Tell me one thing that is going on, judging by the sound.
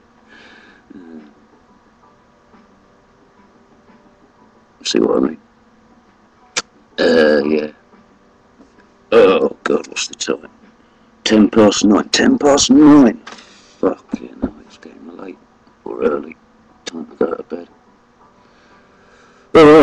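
A middle-aged man speaks close to a microphone in bursts, with pauses.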